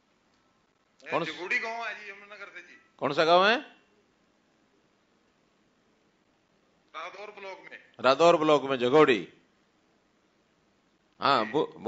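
A man speaks through a loudspeaker in a large hall, in short bursts with pauses.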